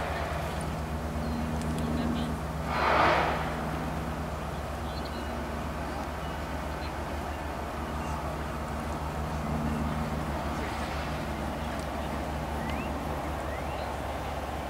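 A horse trots on soft sand.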